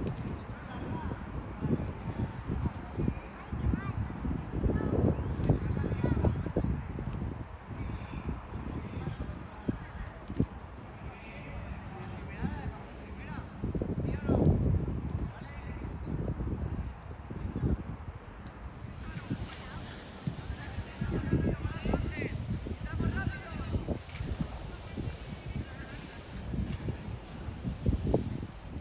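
Children call out across an open field in the distance.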